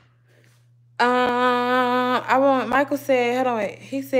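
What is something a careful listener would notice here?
A young woman sings loudly, holding long notes.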